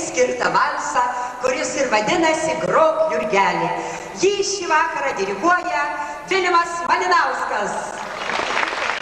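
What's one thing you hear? A woman sings through a microphone.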